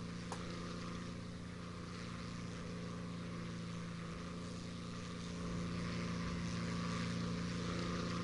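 A propeller plane's engine drones steadily and grows a little louder.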